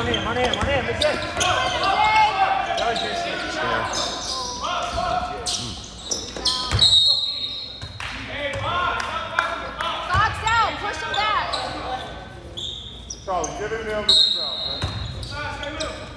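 Sneakers squeak sharply on a hard floor in an echoing gym.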